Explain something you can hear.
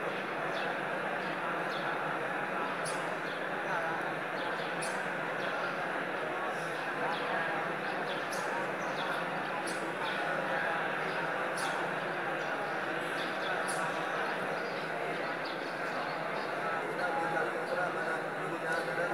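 A large crowd murmurs and chatters throughout a big echoing hall.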